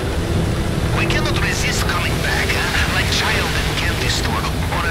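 Water splashes and sprays against a speeding boat's hull.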